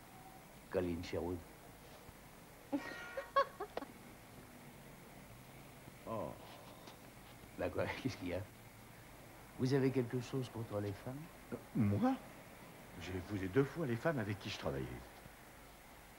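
A man speaks in short, tense phrases with pauses.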